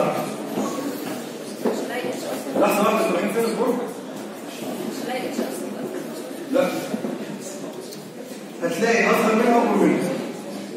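A man speaks with animation through a microphone and loudspeaker in an echoing room.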